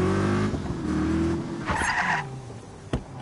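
A car engine hums as the car drives.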